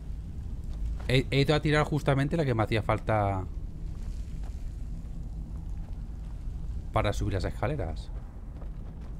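A middle-aged man speaks briefly into a close microphone.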